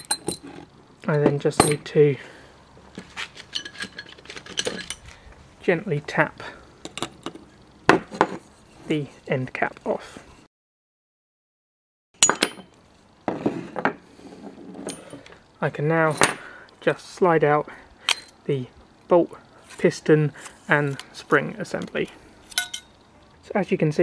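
Metal gun parts click and clatter as they are handled.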